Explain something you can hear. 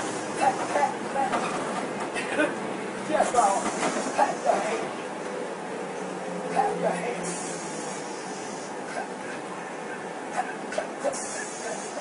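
A woman sings and shouts loudly nearby.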